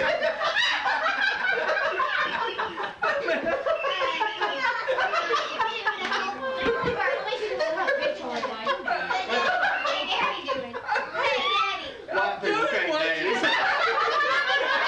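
Several adults and children talk and laugh together nearby, in a lively mix of voices.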